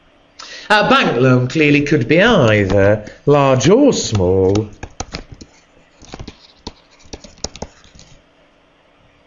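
A pen taps and scratches on a hard writing surface.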